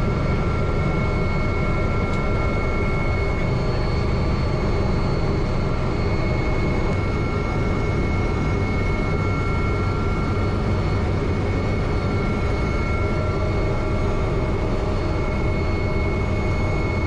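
A helicopter engine and rotor roar steadily from inside the cabin.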